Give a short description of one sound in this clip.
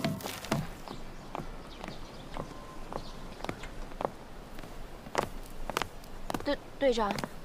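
Footsteps tap on hard pavement.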